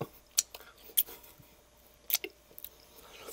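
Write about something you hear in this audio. A man chews crunchy tortilla chips close to a microphone.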